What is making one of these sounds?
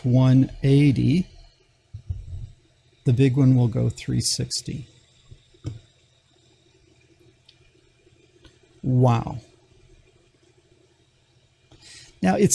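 An older man speaks calmly and clearly into a close microphone, in short bursts with pauses.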